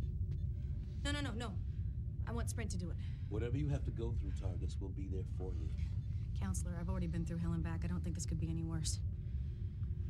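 A man speaks tensely nearby.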